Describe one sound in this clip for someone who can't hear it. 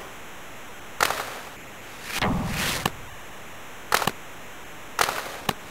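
A hockey puck clacks sharply off sticks a few times.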